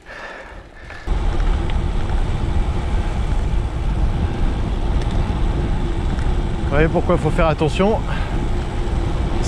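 Wind rushes loudly past a bicycle riding quickly downhill.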